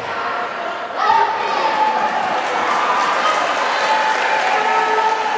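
Spectators cheer and shout loudly.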